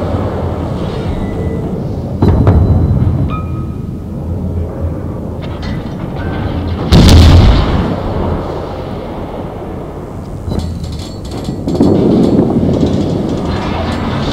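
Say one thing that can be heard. Shells explode on a ship with deep rumbling bursts.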